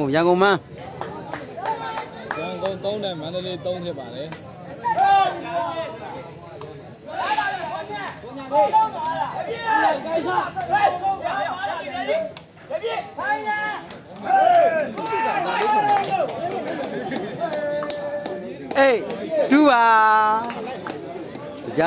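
A crowd of men shout and cheer loudly outdoors.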